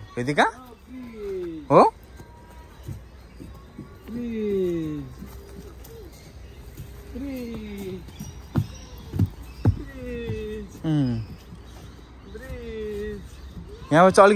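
A young child talks in a high, sing-song voice close by.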